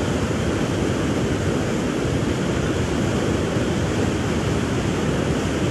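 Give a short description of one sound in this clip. A fast river rushes and churns loudly.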